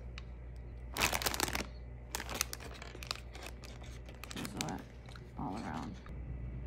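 Liquid pours and splashes into a crinkly foil bag.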